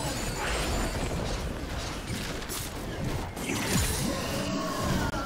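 Magic blasts and weapon hits clash in a video game battle.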